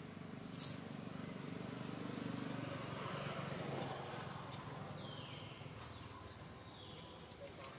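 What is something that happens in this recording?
A small monkey shuffles over dry leaves on the ground.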